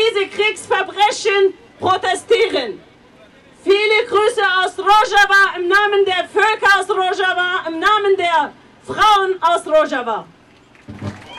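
A woman sings loudly through loudspeakers outdoors.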